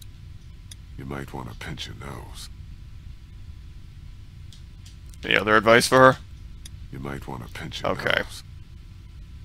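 A man speaks quietly in a low voice, close by.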